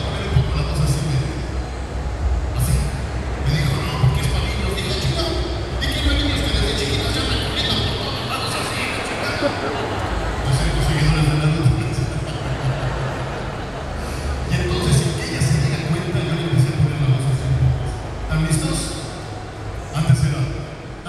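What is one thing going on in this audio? A man sings energetically into a microphone over a loud sound system.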